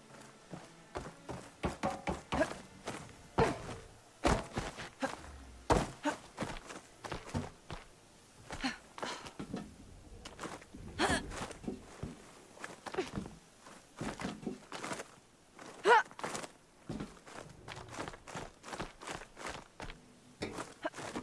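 A climber's hands grab and knock against wooden holds.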